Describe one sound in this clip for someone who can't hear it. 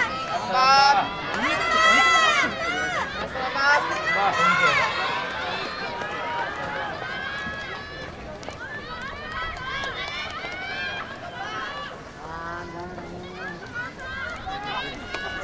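Young spectators shout and cheer from a distance in an open stadium.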